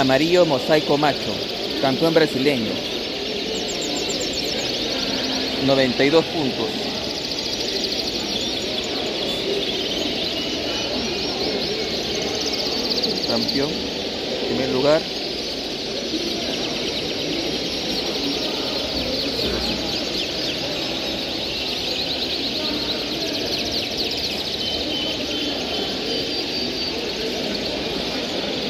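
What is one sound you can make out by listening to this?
Canaries trill and chirp in lively song.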